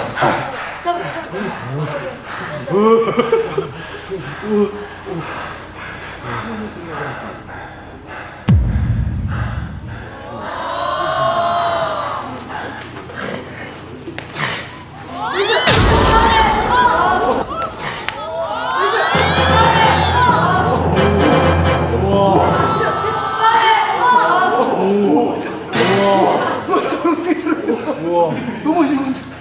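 A group of men laugh and cheer loudly.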